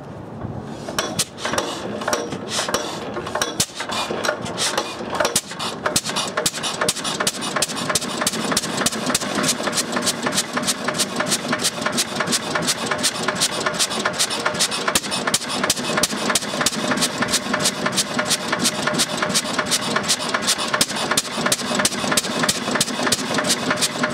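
An old single-cylinder engine starts and chugs steadily with rapid, even popping.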